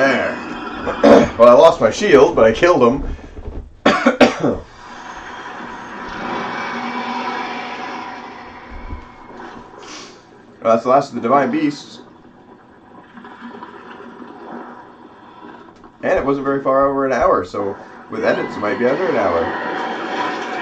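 A young man talks with excitement into a close microphone.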